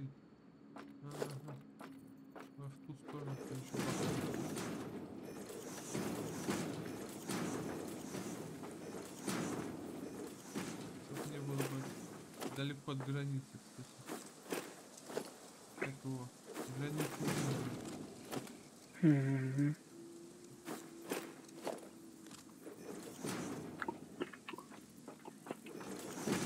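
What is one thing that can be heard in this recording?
Building pieces clunk into place with short mechanical thuds.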